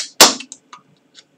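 A metal can knocks down on a hard table.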